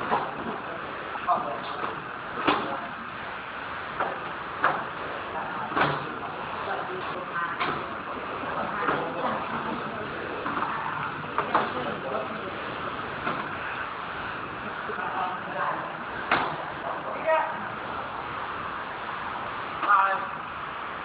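Boxes knock and thump as they are unloaded.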